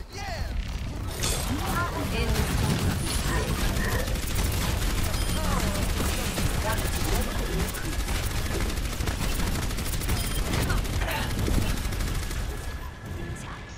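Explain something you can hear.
A sci-fi energy weapon fires in rapid bursts.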